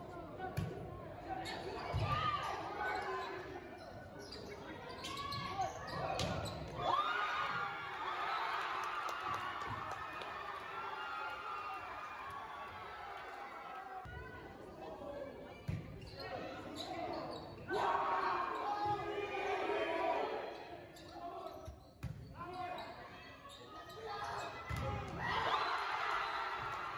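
Young players and onlookers shout and cheer in a large echoing hall.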